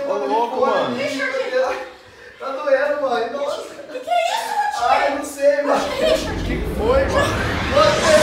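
A young man cries out and wails.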